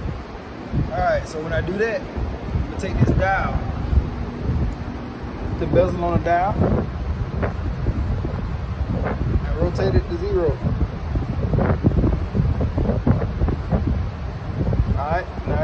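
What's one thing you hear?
A young man calmly explains close to the microphone.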